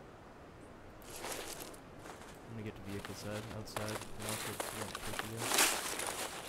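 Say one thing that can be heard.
Branches rustle and brush past.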